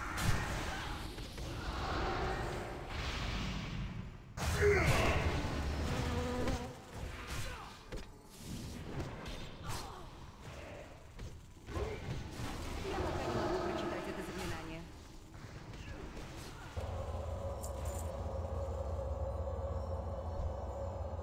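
Spell effects whoosh and crackle during a battle.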